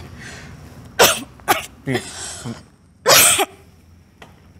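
A young woman sobs.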